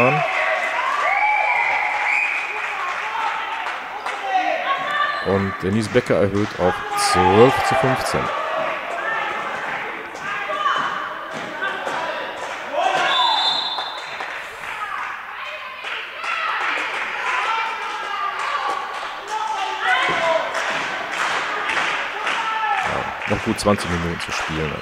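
Sneakers squeak on a hard floor in an echoing hall.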